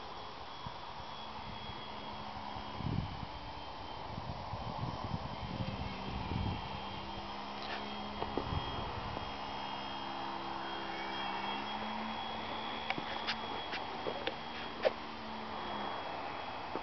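A model plane's electric motor hums steadily overhead.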